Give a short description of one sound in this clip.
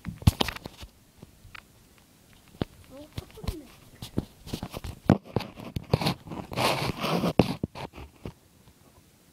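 Handling noises and knocks rub against a phone microphone.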